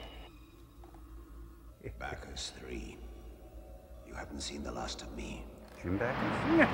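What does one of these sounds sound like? A man speaks calmly over a film soundtrack.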